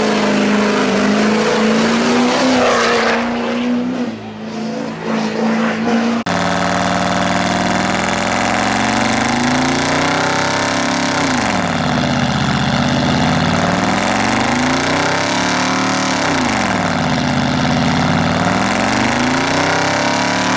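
A truck engine roars loudly and revs up and down.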